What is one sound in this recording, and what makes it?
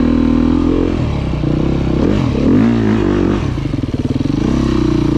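An enduro dirt bike engine revs hard while climbing a steep hill.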